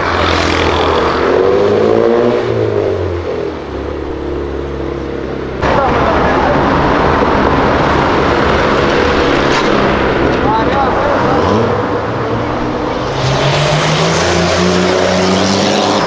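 A car engine hums and revs as cars cruise by.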